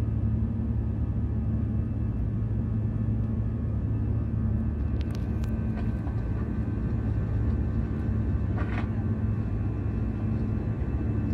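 Jet engines roar with a steady low drone inside an airliner cabin.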